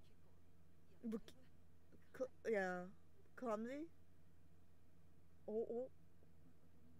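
A young woman speaks in short, drawn-out bursts close to a microphone.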